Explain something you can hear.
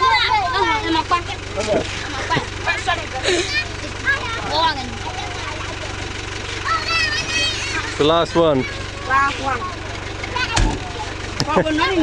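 Children chatter and call out excitedly close by.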